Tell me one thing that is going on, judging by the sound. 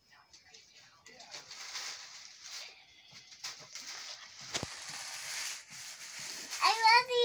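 Tissue paper rustles and crinkles.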